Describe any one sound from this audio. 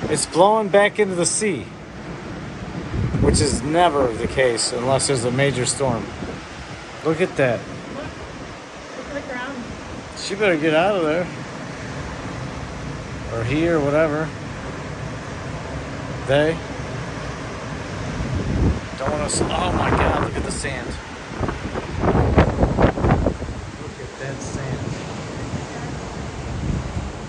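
Waves crash and wash steadily onto a beach.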